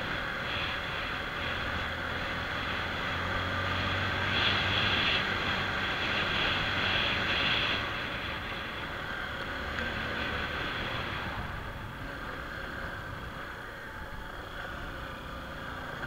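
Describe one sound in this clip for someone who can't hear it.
Tyres rumble over a rough, bumpy road.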